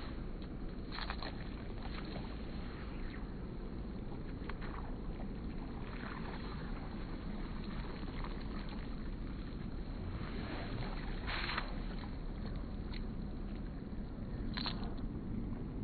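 A fishing line slaps onto the water.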